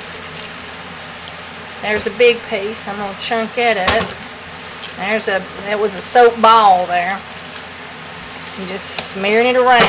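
A spoon squelches as it stirs thick, wet food.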